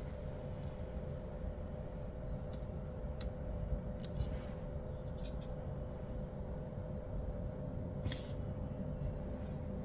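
Fingers tap and rub on paper.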